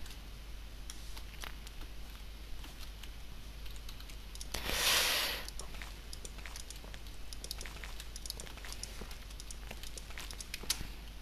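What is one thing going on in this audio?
Blocks knock softly as they are placed, one after another.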